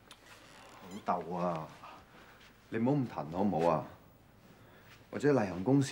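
A young man answers with exasperation, close by.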